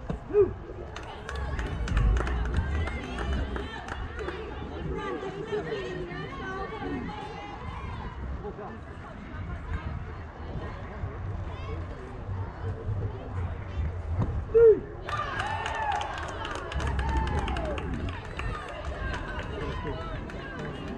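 Young players call out across an open field in the distance.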